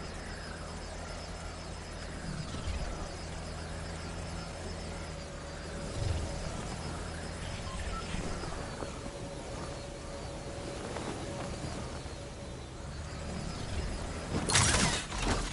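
A flying saucer hums steadily overhead.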